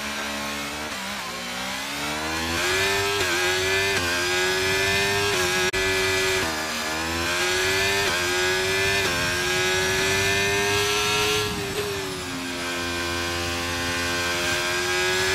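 A racing car engine revs up and down, rising in pitch through the gears.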